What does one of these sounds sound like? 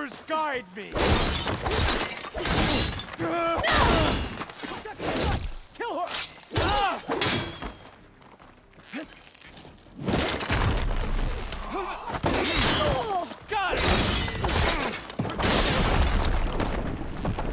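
Heavy impacts and shattering blows crash in quick bursts.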